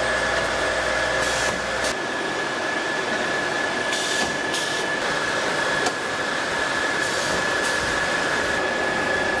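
Factory machinery hums steadily with a constant whine.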